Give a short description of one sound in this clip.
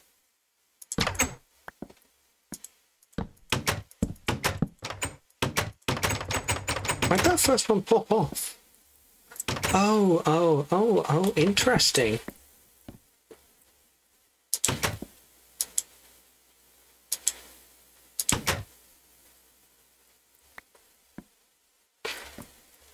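Short wooden knocks sound as blocks are placed.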